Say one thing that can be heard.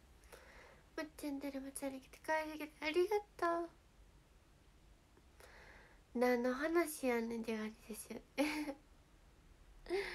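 A young woman speaks softly and cheerfully, close to a microphone.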